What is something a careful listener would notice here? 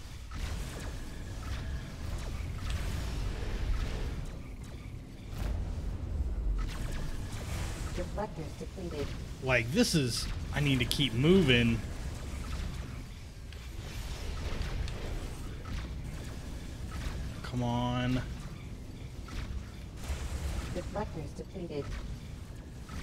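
Spaceship engines roar steadily.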